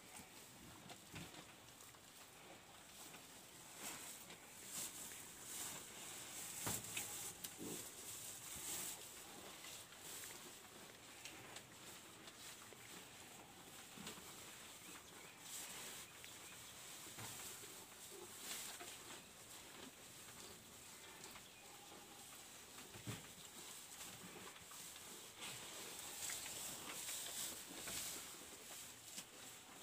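Cows munch and rustle grass close by.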